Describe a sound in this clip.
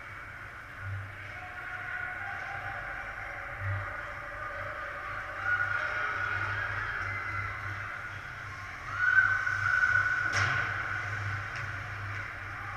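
Ice skates scrape and hiss across the ice in an echoing rink.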